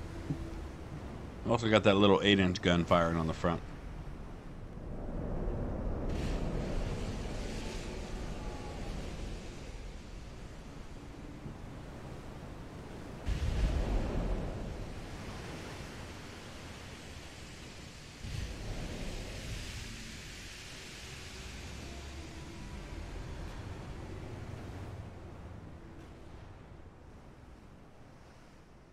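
Waves wash and roar around a ship at sea.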